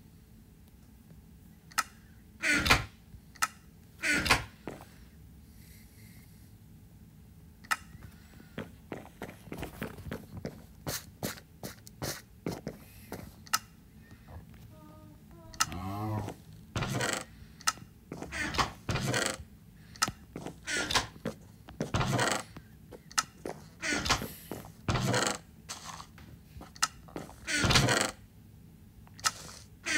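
A wooden chest creaks open and thumps shut.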